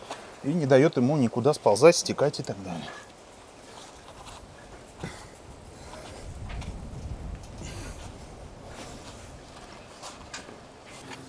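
Gloved hands rub and press against a wooden door frame.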